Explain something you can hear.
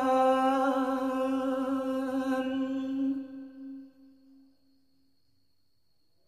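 A young man sings a long held note close to a microphone, slowly fading out.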